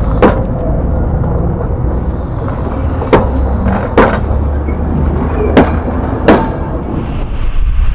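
A train rumbles loudly overhead at close range.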